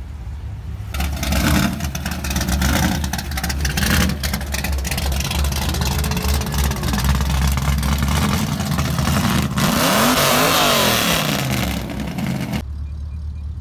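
A dune buggy's engine roars loudly and revs up and down close by.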